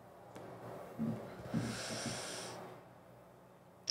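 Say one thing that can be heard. A man draws on a cigarette and exhales smoke.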